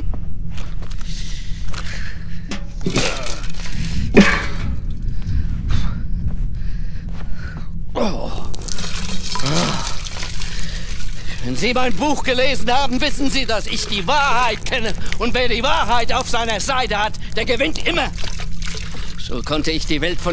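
An elderly man speaks slowly and gravely, close by.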